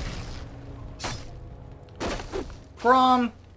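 Swords and axes clash in a battle.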